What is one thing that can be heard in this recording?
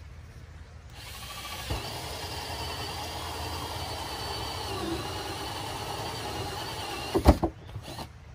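A power drill whirs steadily as it bores.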